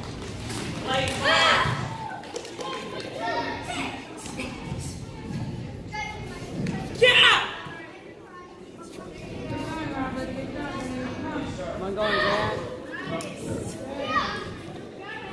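A young woman shouts sharply in short bursts.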